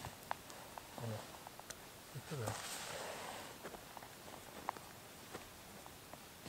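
A backpack's fabric rustles as it is lifted onto a man's shoulders.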